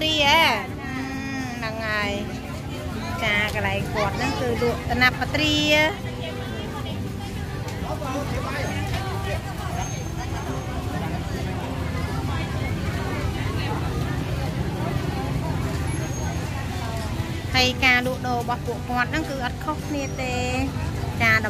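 A crowd murmurs in a busy open-air market.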